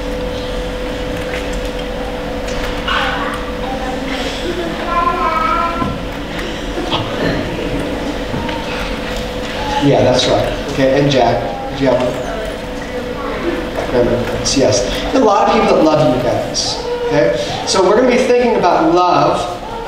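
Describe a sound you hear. Young children chatter and answer in high voices.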